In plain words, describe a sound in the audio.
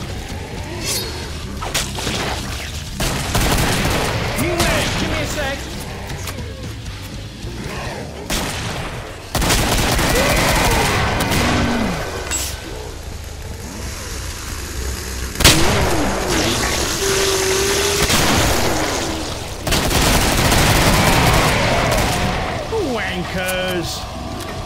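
Monsters growl and shriek.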